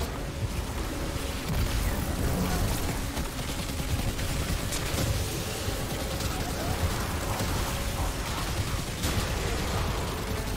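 Electric energy crackles and zaps.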